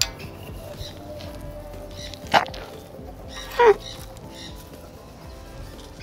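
A water buffalo tears and chews grass.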